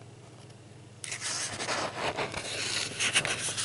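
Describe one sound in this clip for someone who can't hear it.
Stiff paper pages rustle and crinkle as a page is turned.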